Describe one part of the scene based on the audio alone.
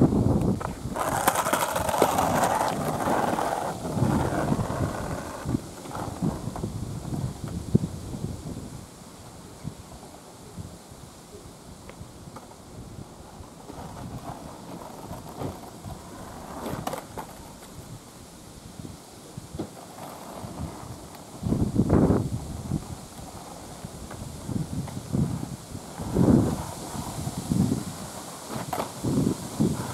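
Skateboard wheels roll and rumble on rough asphalt, passing close by several times.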